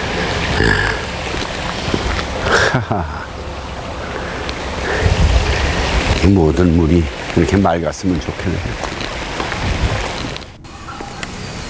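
A small stream trickles over rocks outdoors.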